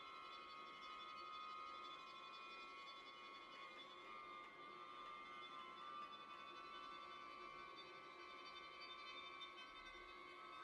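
Violins play a slow, sustained melody together, close by.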